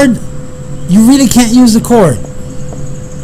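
A man speaks briefly with animation into a microphone.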